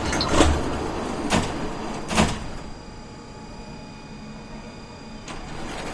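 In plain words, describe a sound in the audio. Tram wheels clunk over rail joints.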